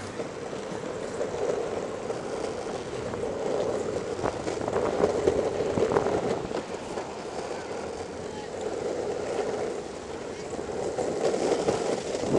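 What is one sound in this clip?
City traffic rumbles steadily along a busy street.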